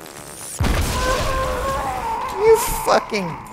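An energy shield crackles and hums loudly.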